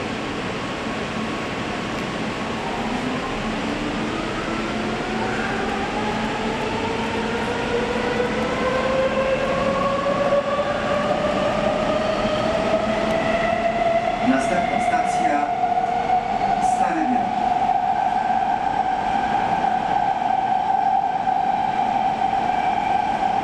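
A metro train's electric motors whine, rising in pitch as the train speeds up.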